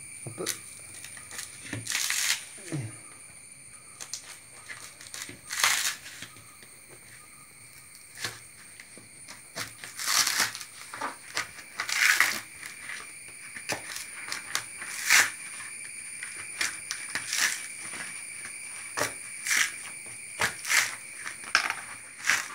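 A metal rod scrapes and tears at coconut husk.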